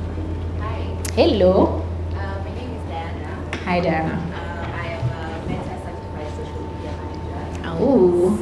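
A young woman speaks with animation to an audience.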